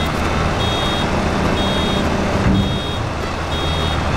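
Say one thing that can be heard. A round baler opens and drops a bale onto grass.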